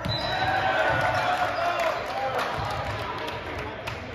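A volleyball is served with a sharp slap in a large echoing gym.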